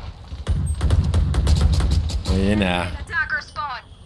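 A gun fires a short burst.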